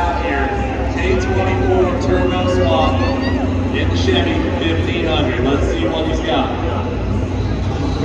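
A small racing car's engine roars and revs as it spins on a track.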